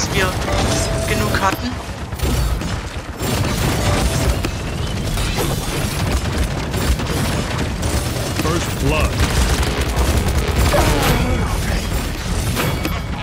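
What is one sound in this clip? Sharp impact sounds and explosions burst among the fighting.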